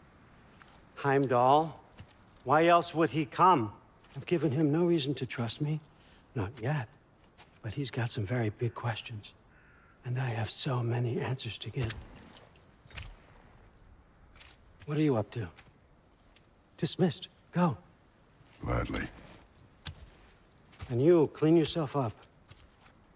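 An elderly man speaks calmly, close by.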